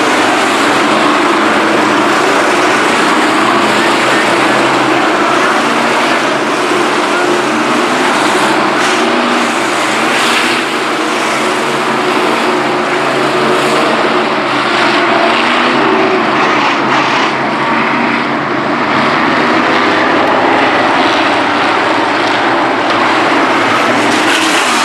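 Race car engines roar loudly as the cars speed around a dirt track.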